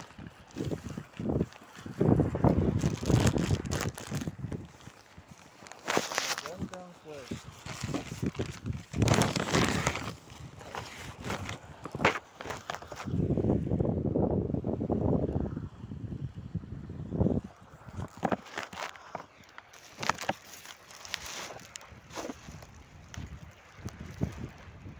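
Wind gusts and buffets loudly against the microphone outdoors.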